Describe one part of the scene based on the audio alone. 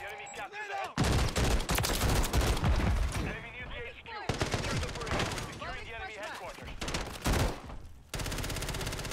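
A rifle fires rapid bursts of loud, booming shots.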